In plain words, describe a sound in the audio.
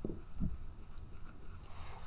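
A crayon rubs and scratches across paper.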